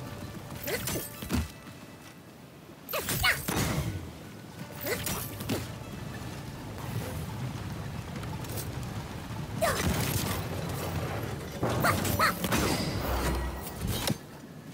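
A heavy axe whooshes through the air and strikes with hard thuds.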